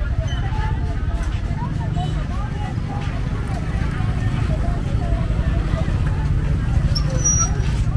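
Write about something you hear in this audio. Motorbikes ride past nearby.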